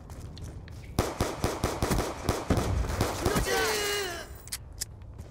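A pistol fires quick shots.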